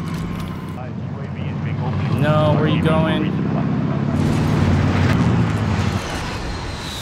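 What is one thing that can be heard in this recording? A truck engine rumbles and revs.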